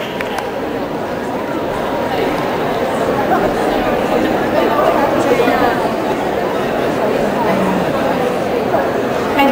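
Young people talk and call out with animation in a large echoing hall.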